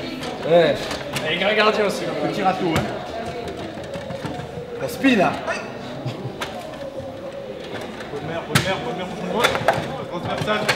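A table football ball knocks sharply against rods and walls.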